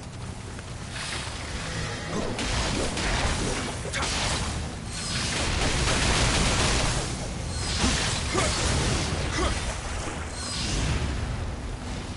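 Water splashes as a figure wades and fights.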